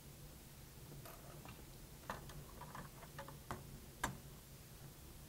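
Small clicks and rustles come from handling an object.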